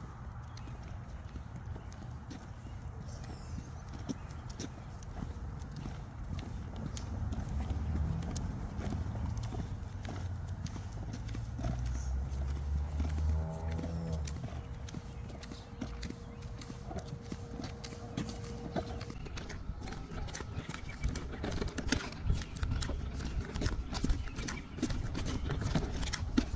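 Stroller wheels roll and rattle on a concrete sidewalk.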